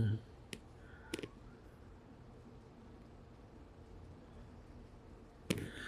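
A finger taps and brushes against a phone close up.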